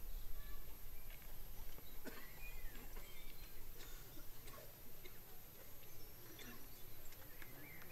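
An elderly man speaks quietly nearby.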